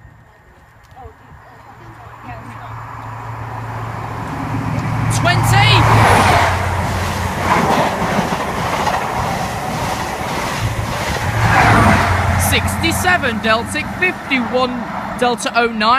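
A train roars past at speed, loud and close.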